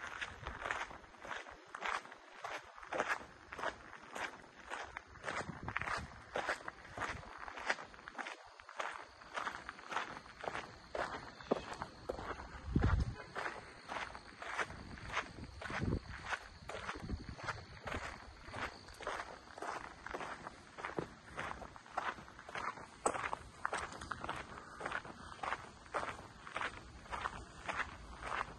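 Footsteps crunch steadily on a gravel path.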